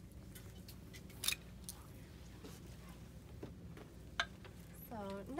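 Clothes hangers click and scrape along a metal rail.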